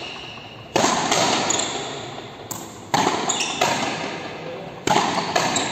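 Frontenis rackets strike a rubber ball, echoing through a large indoor court.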